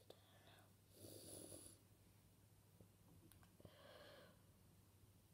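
A girl sighs into her hand.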